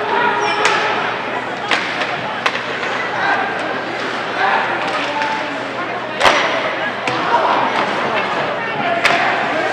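Ice skates scrape and hiss across the ice.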